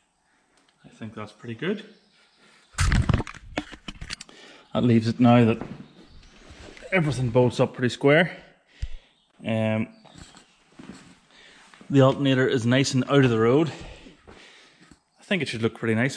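A man talks calmly and closely, explaining.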